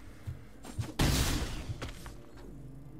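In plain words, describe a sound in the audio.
A heavy magical impact bursts with a loud whoosh.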